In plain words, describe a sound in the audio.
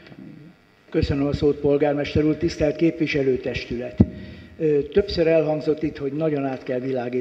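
An older man speaks into a microphone in an echoing hall, with animation.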